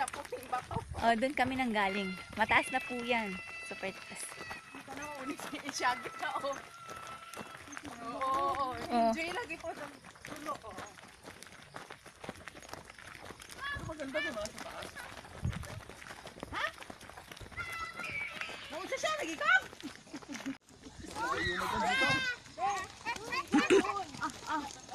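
Several young people shout and call out excitedly close by.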